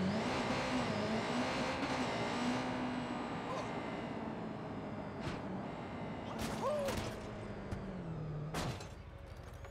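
A motorcycle engine revs and hums.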